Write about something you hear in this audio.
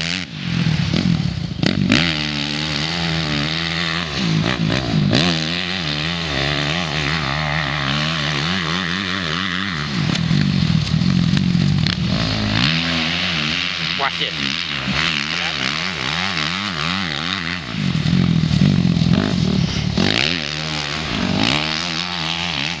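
A dirt bike engine revs and whines, rising and falling in pitch.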